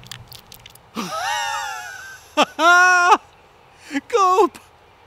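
A man shrieks and laughs loudly, close by.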